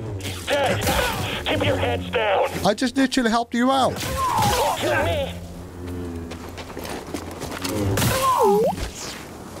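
A lightsaber hums and clashes in quick strikes.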